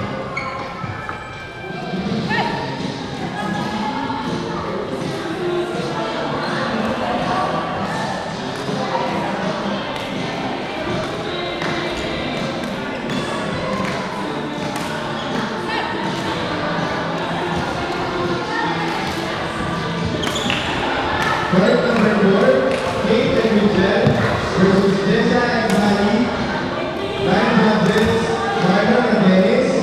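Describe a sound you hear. Shuttlecocks are struck with sharp pops of rackets, echoing in a large hall.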